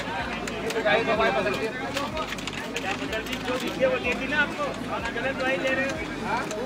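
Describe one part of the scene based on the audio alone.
Several men talk over one another nearby in a busy crowd.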